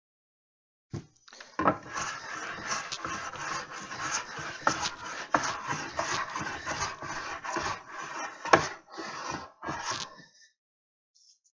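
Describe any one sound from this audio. A hand plane shaves wood in quick, rasping strokes.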